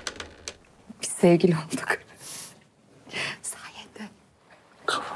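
A young woman speaks playfully and laughs.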